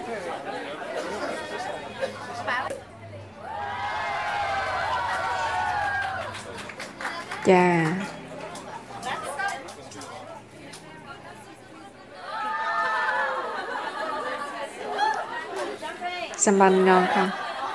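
An audience laughs and murmurs.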